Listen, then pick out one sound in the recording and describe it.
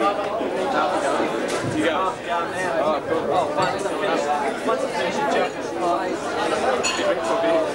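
A man talks into a microphone over loudspeakers.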